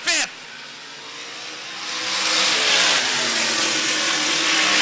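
Race car engines roar around a track, growing louder.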